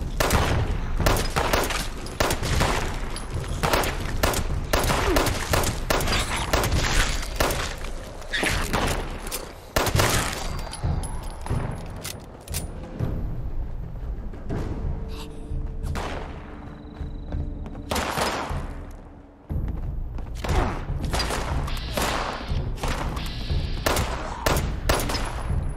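Pistol shots fire in quick bursts, loud and sharp.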